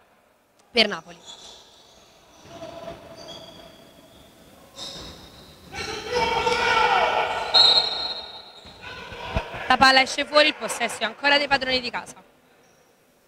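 Sneakers squeak on a hard court floor in a large echoing hall.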